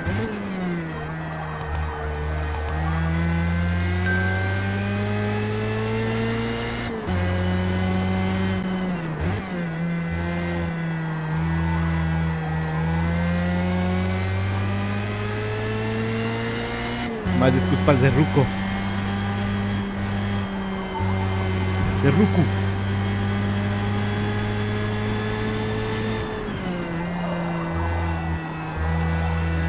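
A racing car engine roars steadily, rising in pitch and dropping sharply at each gear change.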